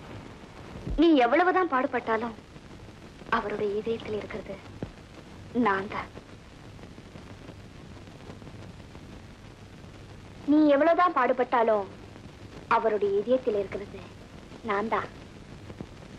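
A woman speaks softly and slowly, close by.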